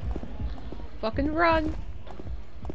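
A young woman exclaims loudly into a close microphone.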